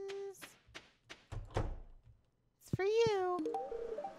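A door opens and shuts with a dull thud.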